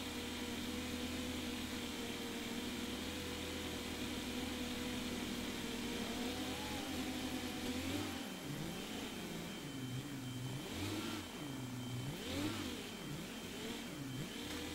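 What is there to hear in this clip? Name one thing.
A tractor engine drones as it pulls an implement.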